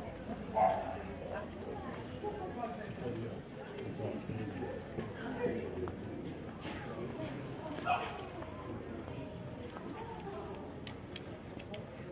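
Footsteps tap on cobblestones close by.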